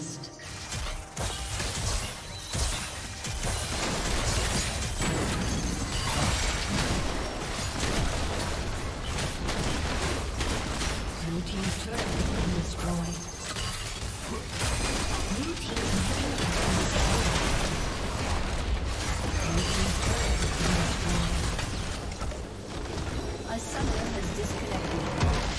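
Video game spell effects whoosh, crackle and explode in a busy fight.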